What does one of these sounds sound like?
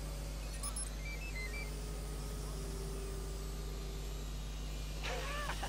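A small drone hums and whirs steadily close by.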